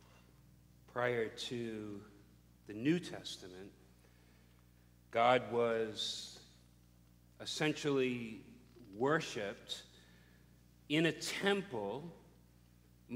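A middle-aged man speaks into a microphone in bursts, with pauses between phrases.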